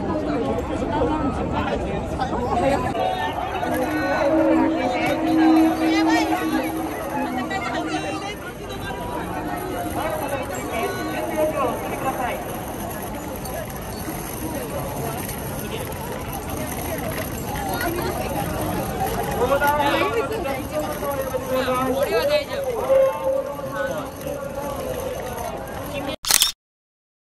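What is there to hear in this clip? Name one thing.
A large crowd of young men and women chatters and calls out outdoors.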